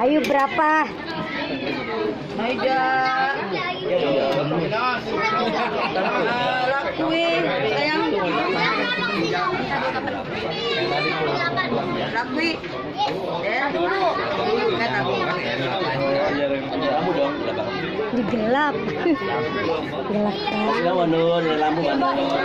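Several young people talk and chatter at close range, with overlapping voices.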